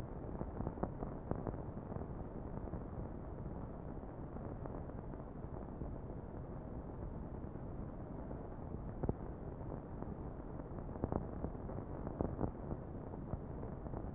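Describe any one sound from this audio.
Chalk scratches and taps on a slate.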